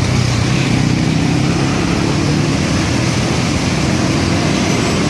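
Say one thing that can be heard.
Busy city traffic rumbles steadily nearby, with engines and motorbikes.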